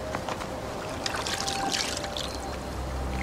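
Hands splash in shallow running water.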